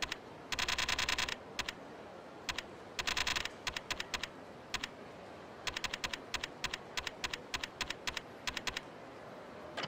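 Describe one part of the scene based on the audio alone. Menu cursor clicks tick rapidly as a list scrolls.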